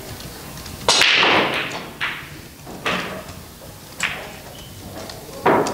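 Billiard balls clack against each other and roll across the table.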